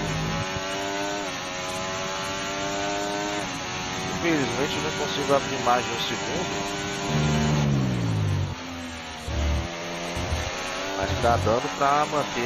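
A racing car engine screams at high revs, rising and dropping in pitch as gears shift.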